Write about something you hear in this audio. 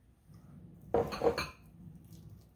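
A man bites into crunchy food.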